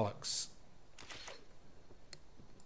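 A short magical chime sounds as a card is played.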